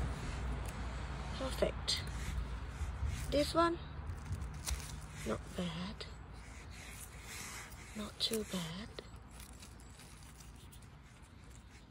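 Dry leaves and pine needles rustle under a hand.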